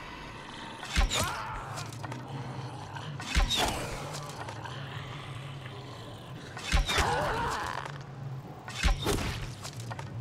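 Arrows thud into bodies with sharp impacts.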